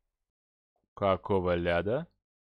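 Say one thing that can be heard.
A young man speaks briefly and with animation, close to a microphone.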